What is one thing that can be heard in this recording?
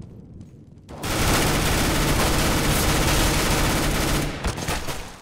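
A rifle fires in rapid bursts, loud and close.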